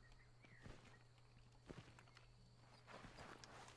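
Boots step on hard ground.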